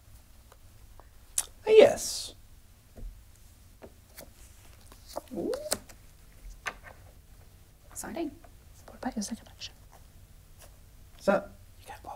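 Playing cards shuffle and tap softly.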